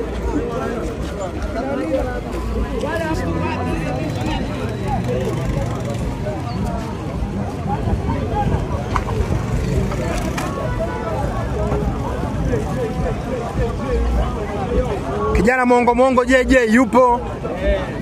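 A crowd of men and women chatter loudly outdoors.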